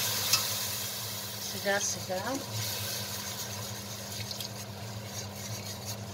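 A roux sizzles softly in a hot pan.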